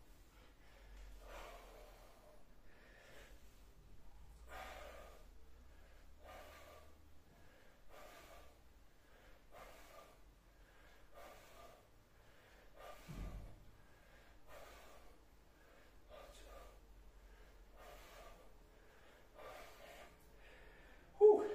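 A man breathes out hard in a steady rhythm.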